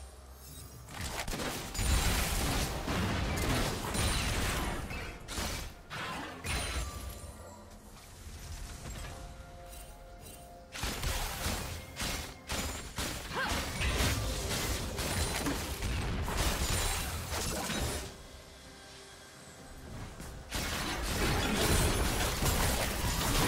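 Game spells and attacks crackle and boom in bursts.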